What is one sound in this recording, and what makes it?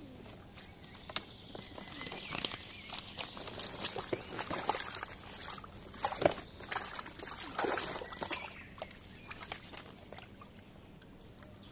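A fabric bag rustles as it is stuffed into a bucket.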